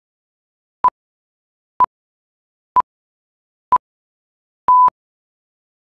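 Short beeps sound once a second during a film countdown.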